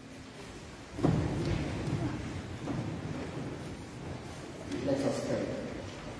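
A man speaks into a microphone, his voice echoing through a large hall.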